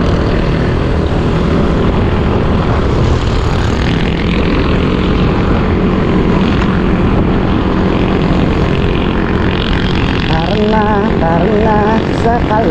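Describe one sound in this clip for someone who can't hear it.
Wind roars loudly across the microphone outdoors.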